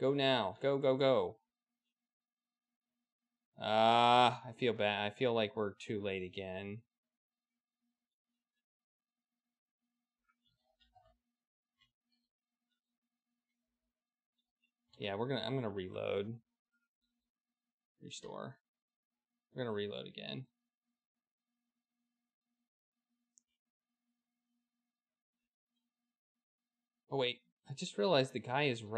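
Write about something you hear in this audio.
An adult man talks calmly into a headset microphone, in short bursts.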